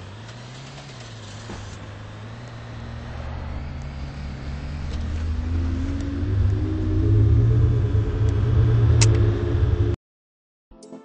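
A low mechanical hum rises steadily in pitch.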